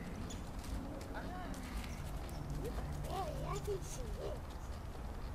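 A woman talks with animation to a dog, from a distance outdoors.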